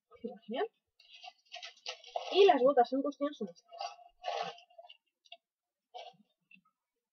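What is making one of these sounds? A plastic wrapper rustles as it is handled.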